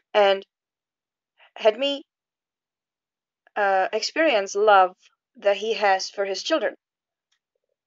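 A young woman speaks calmly and close to the microphone, in short phrases with pauses.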